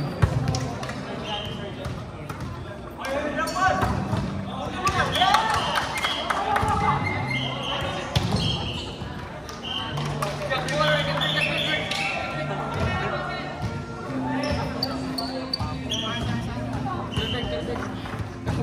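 Sneakers squeak sharply on the hard floor.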